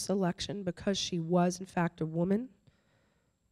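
An older woman speaks with animation into a microphone.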